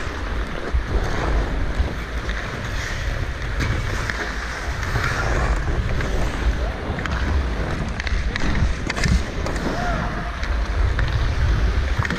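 Wind rumbles across a microphone as the skater moves.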